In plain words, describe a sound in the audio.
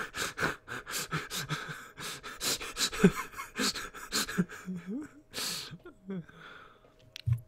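A young man laughs loudly and heartily close to a microphone.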